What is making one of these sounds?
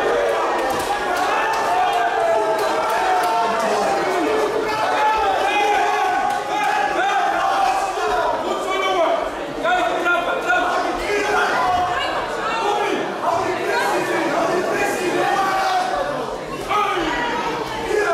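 A crowd cheers and shouts loudly throughout.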